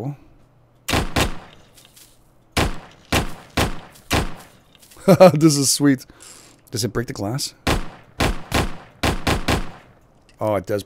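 A pistol fires a quick series of sharp shots.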